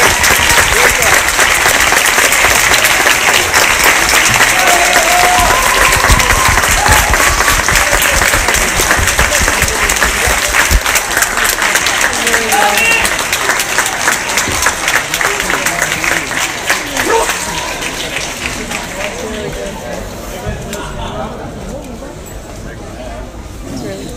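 A large audience applauds loudly in a big hall and slowly dies down.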